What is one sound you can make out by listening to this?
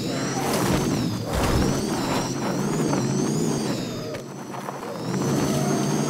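Tyres skid and spin on grass.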